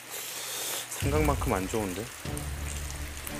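A man speaks hesitantly.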